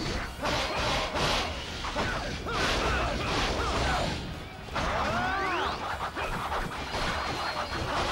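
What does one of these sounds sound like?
Swords clash and slash repeatedly in a fierce battle.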